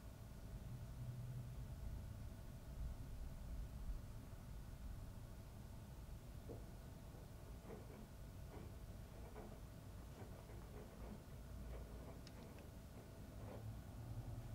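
A washing machine hums and rumbles steadily.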